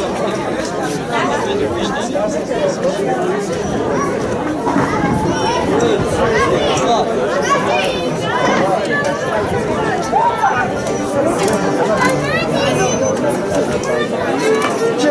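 A small folk band plays a lively tune.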